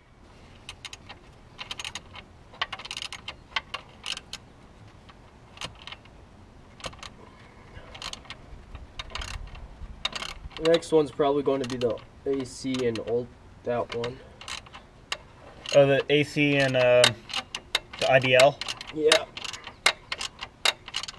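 Metal parts click and clink.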